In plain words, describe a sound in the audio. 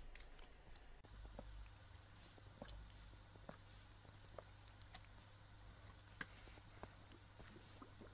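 Lava softly pops and crackles.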